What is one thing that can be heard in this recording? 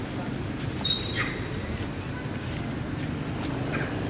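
Dry leaves rustle and crunch as a monkey walks over them.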